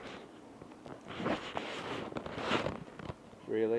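Fur and clothing rustle as a small dog is handled.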